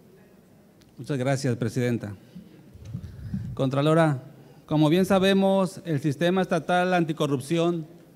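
A man speaks loudly and clearly into a microphone.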